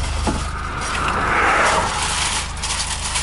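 An oncoming vehicle whooshes past.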